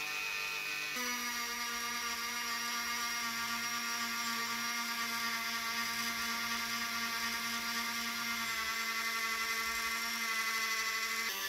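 A spinning polishing wheel grinds against metal.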